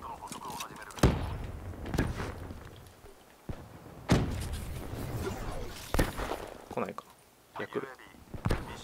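Gunshots crack in short, sharp bursts with a ringing echo.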